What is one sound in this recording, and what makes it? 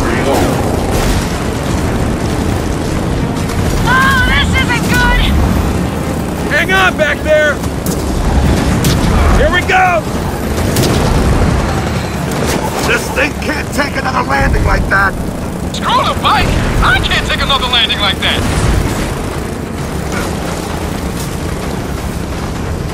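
A motorcycle engine rumbles steadily as it rides along.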